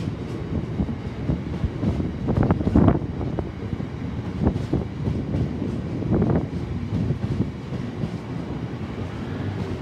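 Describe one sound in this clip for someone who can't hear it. Train wheels clatter and squeal over rail joints.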